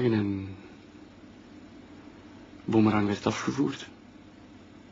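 A man speaks calmly and close by, in short bursts.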